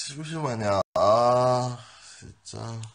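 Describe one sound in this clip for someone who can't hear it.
A young man groans and yawns loudly.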